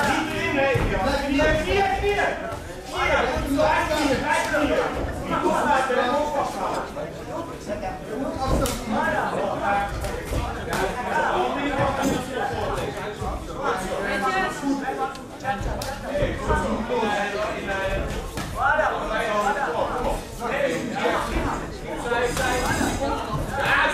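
Gloves and shins thud against bodies in quick bursts.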